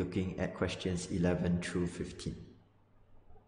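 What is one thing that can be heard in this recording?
A young man speaks calmly into a close microphone.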